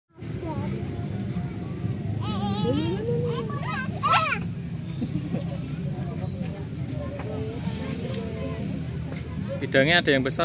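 Young children talk and squeal excitedly close by.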